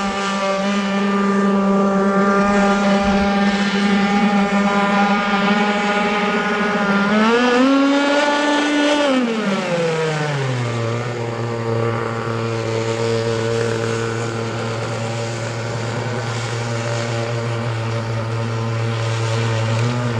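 A small model boat's motor whines steadily across the water, rising and falling in pitch as it speeds up and turns.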